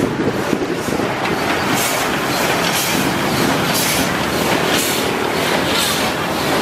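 Steam hisses loudly from a locomotive's cylinders.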